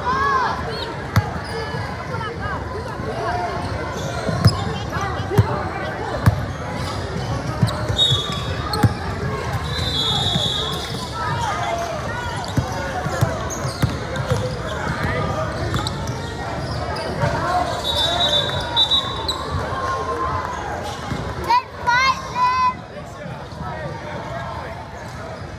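Players and spectators chatter and call out throughout the echoing gym.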